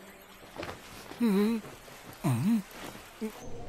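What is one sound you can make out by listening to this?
A gagged man groans in muffled bursts.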